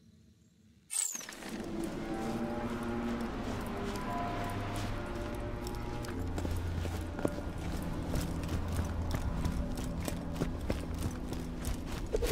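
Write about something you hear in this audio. Footsteps crunch over snow in a video game.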